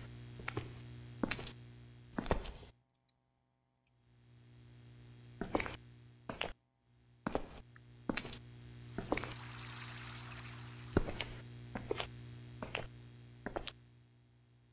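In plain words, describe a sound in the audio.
Slow footsteps thud on a hard floor.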